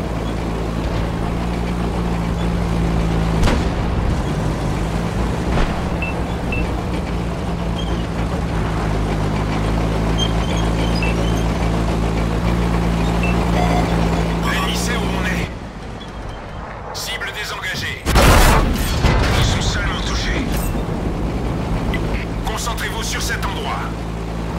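A heavy tank engine rumbles steadily.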